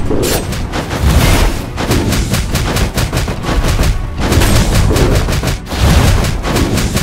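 Heavy fists slam down with deep, booming thuds.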